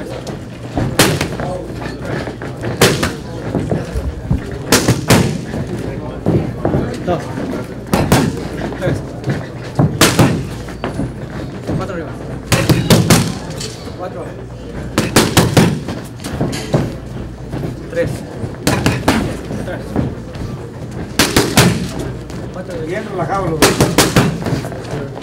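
Boxing gloves smack against punch mitts in quick bursts of punches.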